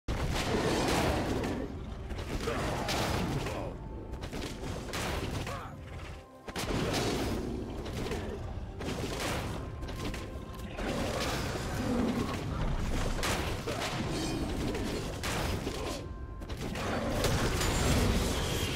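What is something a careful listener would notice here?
Game characters clash with sword strikes and spell effects.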